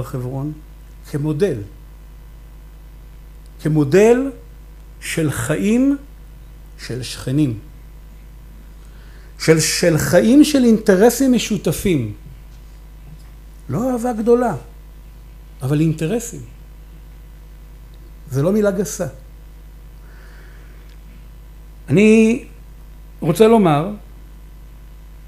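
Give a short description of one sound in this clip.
A middle-aged man speaks with animation into a microphone, in bursts with pauses, heard through a loudspeaker.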